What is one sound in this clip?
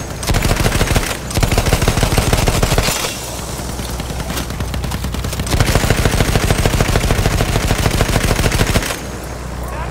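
A machine gun fires in long rapid bursts.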